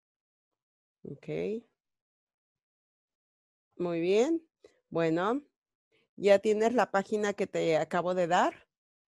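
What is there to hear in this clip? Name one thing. A woman speaks calmly into a headset microphone, heard through an online call.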